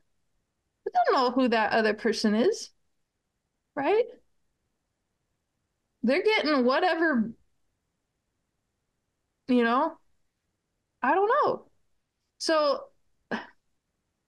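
A middle-aged woman speaks with animation over an online call, in short bursts with pauses.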